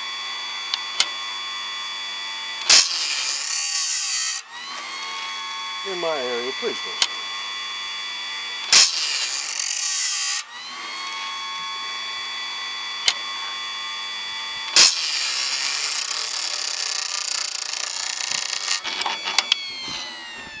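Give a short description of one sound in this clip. A machine arm clicks sharply as it moves back and forth.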